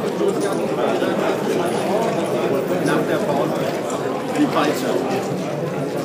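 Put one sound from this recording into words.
Dice rattle and tumble onto a board.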